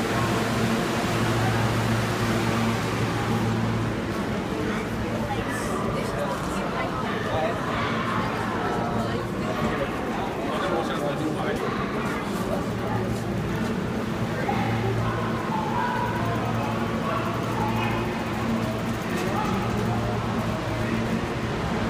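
Footsteps shuffle on a platform.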